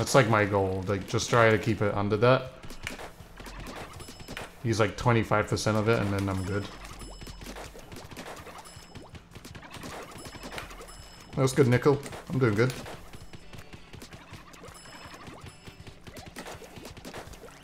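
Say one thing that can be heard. Game weapons splat ink with soft squelching bursts.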